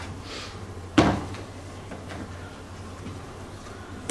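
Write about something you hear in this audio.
Book pages rustle as a man leafs through a book.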